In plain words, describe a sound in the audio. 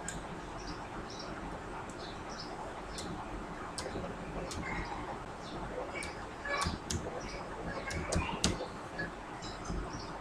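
Keys on a computer keyboard click as someone types.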